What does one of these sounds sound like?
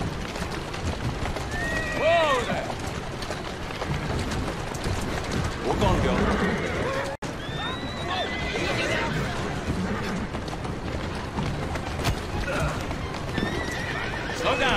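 Carriage wheels rumble over a paved street.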